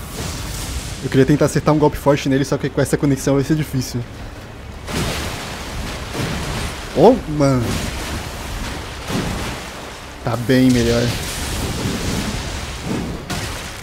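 Metal weapons clash and slash.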